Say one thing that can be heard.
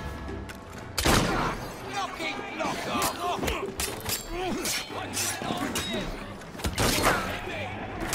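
Punches land with heavy thuds in a brawl.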